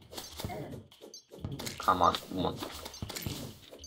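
A small character splashes into water.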